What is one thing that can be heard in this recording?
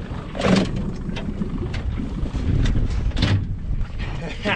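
A large fish splashes and thrashes in the water close by.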